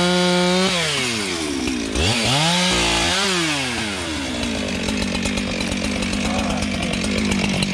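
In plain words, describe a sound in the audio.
A chainsaw revs up and down loudly close by.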